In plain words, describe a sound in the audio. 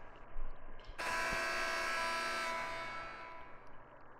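A loud buzzer horn blares and fades.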